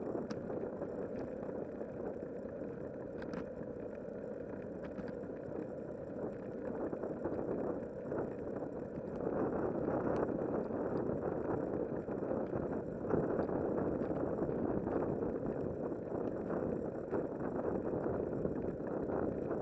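Wind rushes past the microphone, steady and loud.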